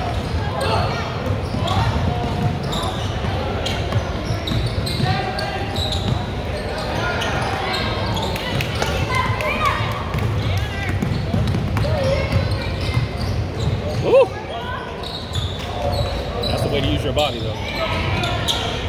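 Basketball shoes squeak sharply on a wooden court in a large echoing gym.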